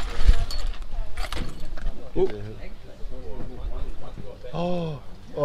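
An elderly man talks casually nearby.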